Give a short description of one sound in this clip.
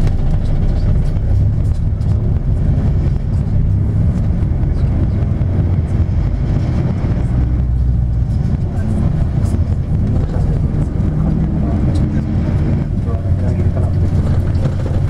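A vehicle engine rumbles steadily from inside while driving along a road.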